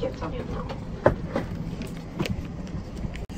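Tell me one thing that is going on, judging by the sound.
Bags thump and knock into an overhead bin.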